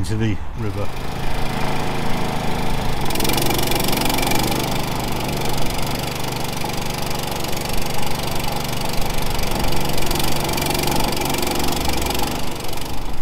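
A small engine runs with a steady drone.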